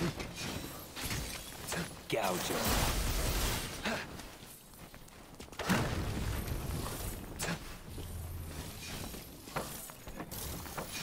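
Sword slashes and impacts ring out in quick bursts.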